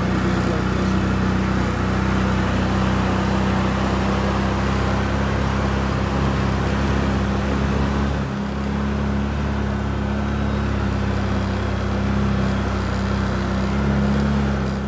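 Tyres roll over rough brush.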